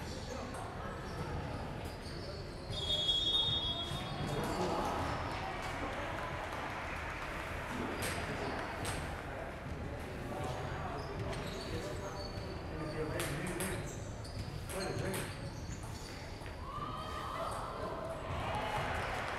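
Table tennis balls click on paddles and tables in a large echoing hall.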